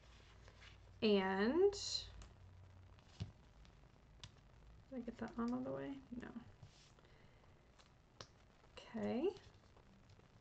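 A woman speaks calmly into a nearby microphone, in short bursts.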